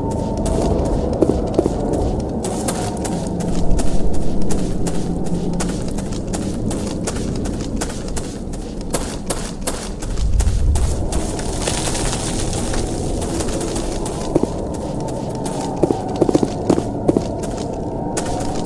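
Footsteps tread steadily on a hard, gritty floor.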